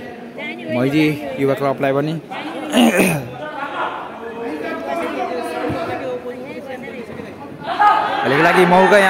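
Young men shout to each other during a football match.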